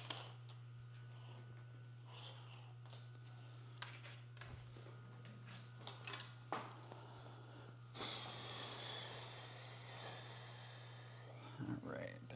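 Fabric rustles as a man shakes and handles it.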